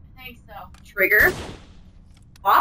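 A video game gun fires a loud blast.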